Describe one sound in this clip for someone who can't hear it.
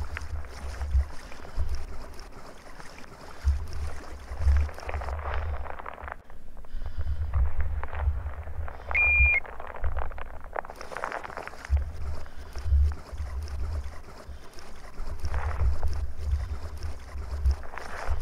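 Water sloshes and splashes as someone wades slowly through it.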